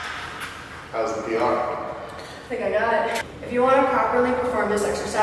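A man speaks calmly nearby in an echoing room.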